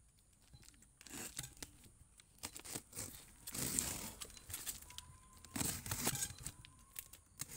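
A utility knife slices through packing tape.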